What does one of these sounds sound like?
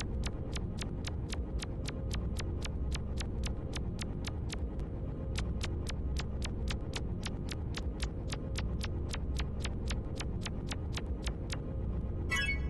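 Quick, light footsteps tap in a steady rhythm.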